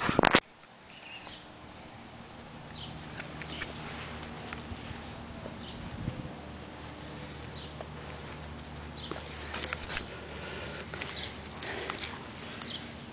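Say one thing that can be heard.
A puppy snuffles and sniffs close by.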